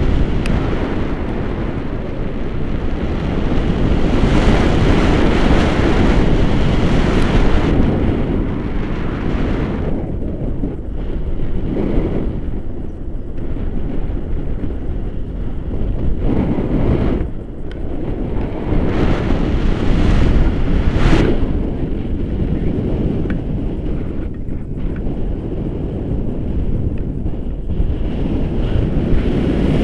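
Strong wind roars and buffets past a microphone, high in open air.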